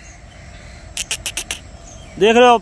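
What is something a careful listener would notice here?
A bird pecks at the ground with quick taps.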